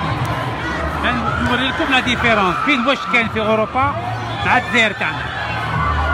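People in a crowd shout and cheer loudly.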